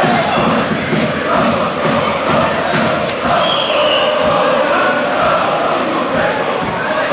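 A large crowd of football fans chants in unison in an open-air stadium.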